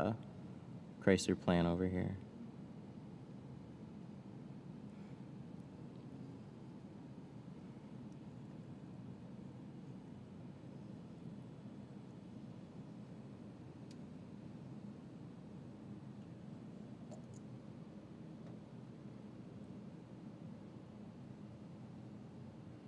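A small blade scrapes softly across glass.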